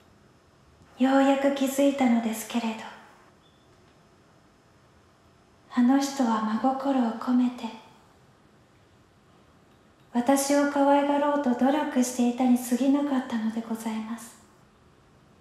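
A woman speaks quietly and tensely, close by.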